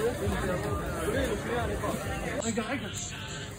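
A crowd chatters in a busy street.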